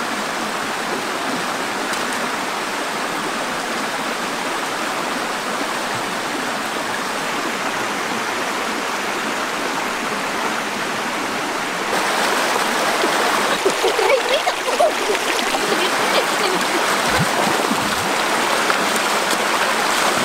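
A shallow stream rushes and splashes over rocks.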